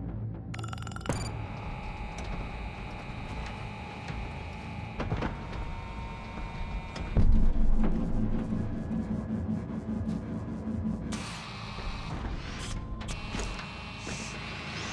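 A low mechanical hum drones steadily in a large hall.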